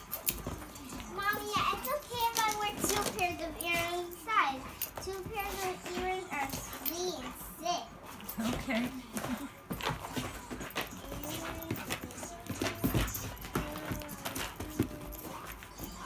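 Two dogs growl and grumble playfully up close.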